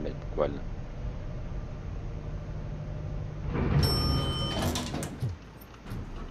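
An elevator hums and its doors slide open with a loud whoosh.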